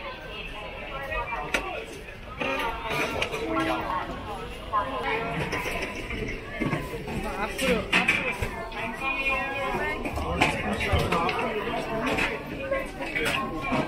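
A crowd chatters all around.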